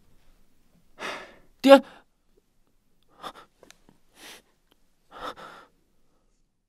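A young woman speaks softly and sadly.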